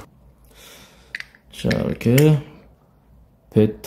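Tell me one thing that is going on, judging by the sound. Hard plastic parts click and rattle close by as they are handled.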